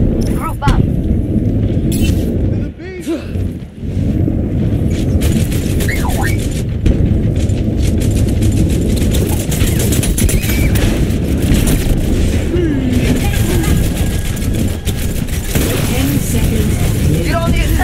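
A heavy metal ball rolls and rumbles steadily over hard ground.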